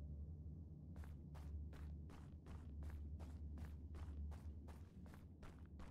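Quick, even footsteps tap.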